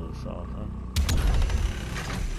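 A heavy melee blow lands with a loud crunch.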